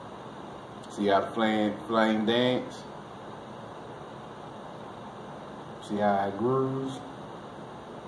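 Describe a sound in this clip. A man speaks slowly and calmly, close by, in short phrases with long pauses.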